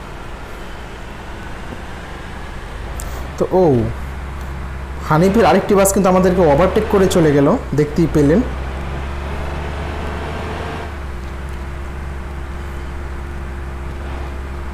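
A bus engine drones steadily at low pitch.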